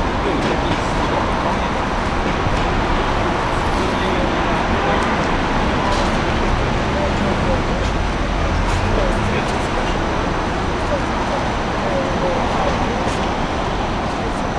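Footsteps pass close by on pavement.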